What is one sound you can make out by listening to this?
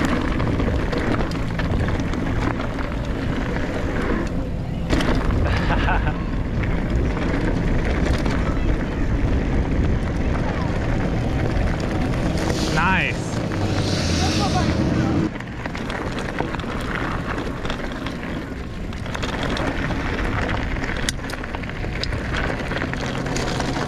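Bike tyres crunch and rattle over dirt and gravel.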